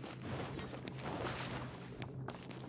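Water splashes briefly underfoot.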